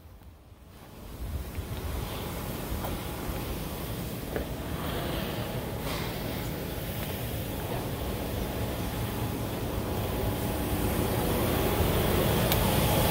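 Footsteps scuff on a concrete path.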